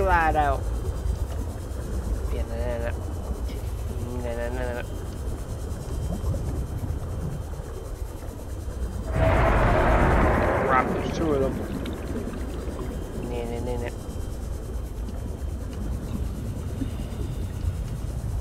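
A small submersible's motor hums steadily underwater.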